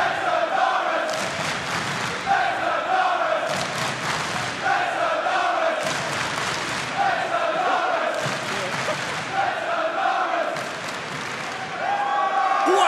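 A large crowd chants in rhythm in a big echoing arena.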